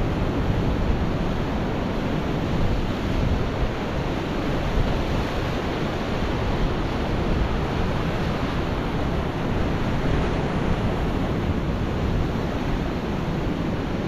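Waves crash and surge over rocks.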